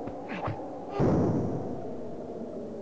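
A loud noisy whoosh sound effect bursts and fades.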